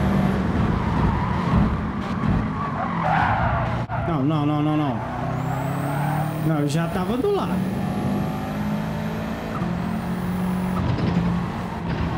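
A race car engine roars and revs up and down through gear changes.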